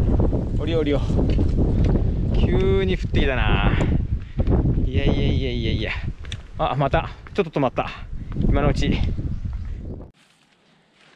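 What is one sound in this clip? A young man talks casually, close to a microphone.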